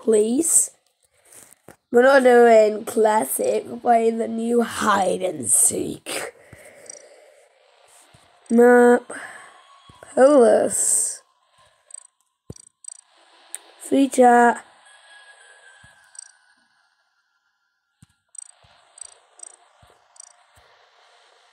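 Soft interface blips sound as game menu options are picked.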